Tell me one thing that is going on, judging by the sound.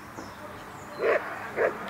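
A dog barks loudly twice close by.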